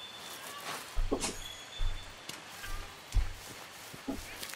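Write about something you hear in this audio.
Heavy footsteps thud on soft ground.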